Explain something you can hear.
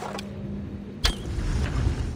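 A bow is drawn and an arrow shoots off with a sharp snap.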